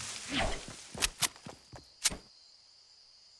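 Gunshots ring out in quick succession.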